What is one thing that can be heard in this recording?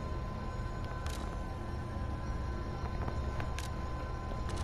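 Soft interface clicks sound as menu choices are made.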